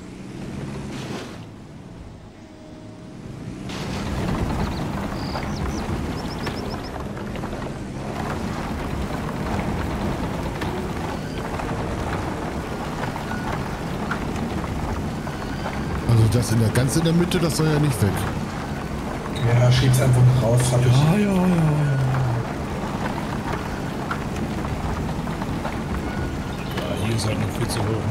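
A heavy bulldozer engine rumbles steadily, rising and falling in pitch.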